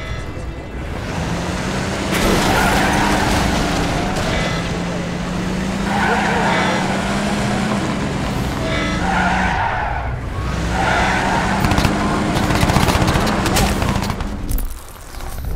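A pickup truck engine drives and revs.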